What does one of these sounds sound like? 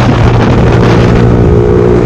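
A truck rumbles by close alongside.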